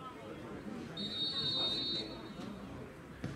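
A referee's whistle blows a short steady blast.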